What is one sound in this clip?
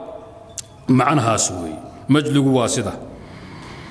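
A man speaks calmly and slowly into a microphone, close by.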